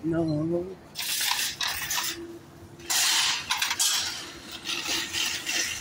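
Metal shopping carts rattle as a hand pulls them.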